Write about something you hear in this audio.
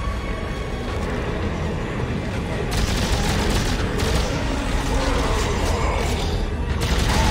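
A deep rumbling drone hums steadily.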